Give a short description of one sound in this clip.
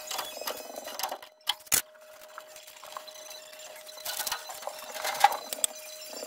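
Metal parts clatter and knock.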